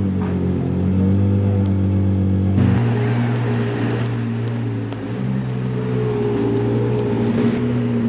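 A sports car engine rumbles loudly at low speed close by.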